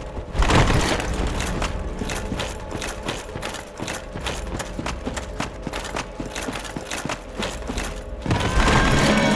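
Armoured footsteps crunch steadily over rocky ground.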